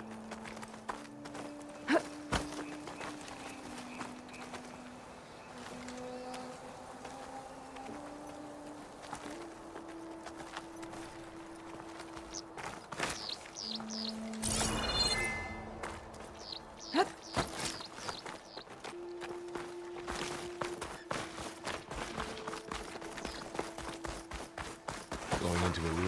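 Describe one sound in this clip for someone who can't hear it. Footsteps crunch over leaves and grass.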